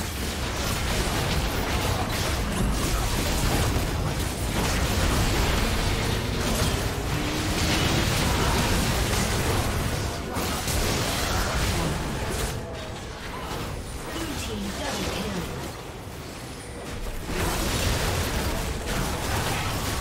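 Spell blasts and weapon hits crackle and clash in a fast video game fight.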